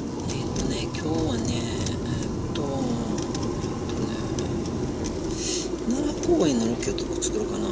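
A young woman talks quietly to herself.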